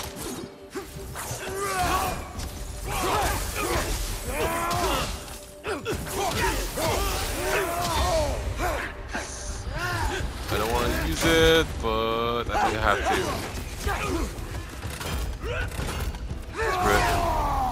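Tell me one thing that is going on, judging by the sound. Fiery blasts roar and crackle.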